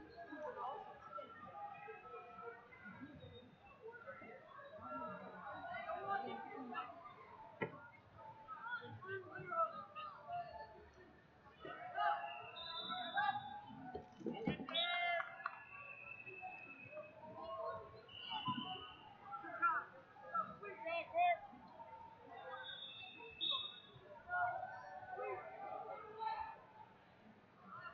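A crowd chatters and calls out in a large echoing arena.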